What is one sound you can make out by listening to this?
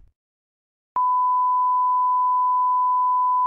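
A steady, high-pitched test tone beeps.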